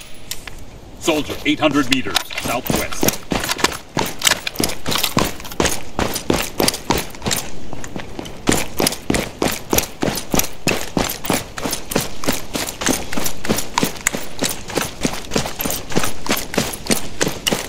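Footsteps run quickly on gravel and pavement.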